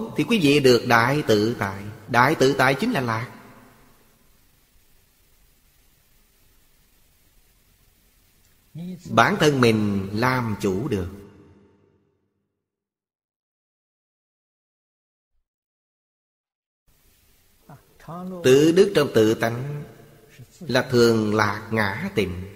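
An elderly man speaks calmly and close to a microphone, with long pauses.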